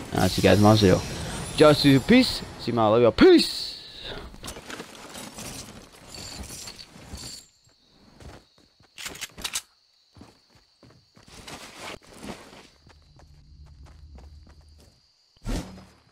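Footsteps patter quickly on wood and grass.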